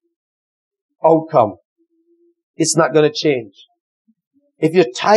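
A man speaks calmly in short phrases.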